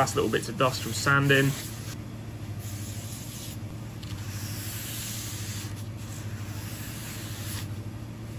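A cloth rubs softly across a plastic surface.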